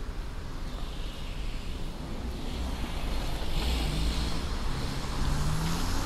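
A car engine hums as the car turns slowly nearby.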